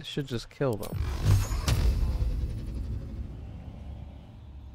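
A magic spell bursts with a loud rumbling blast.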